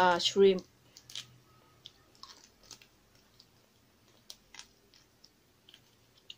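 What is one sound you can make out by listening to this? A young woman chews food with soft smacking sounds.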